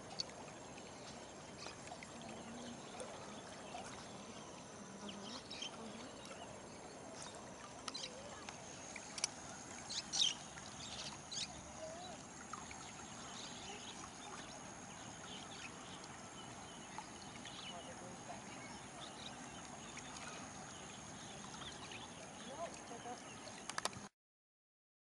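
River water ripples and laps gently.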